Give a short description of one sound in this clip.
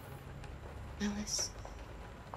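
A young woman says a word softly, close by.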